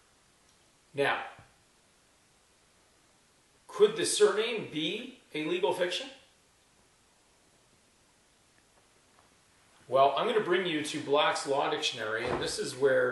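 An elderly man speaks calmly, close by, with pauses.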